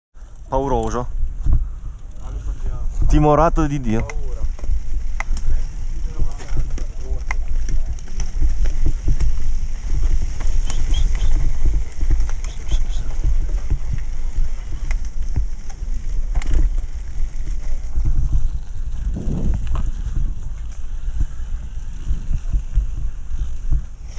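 Wind rumbles loudly against a moving rider.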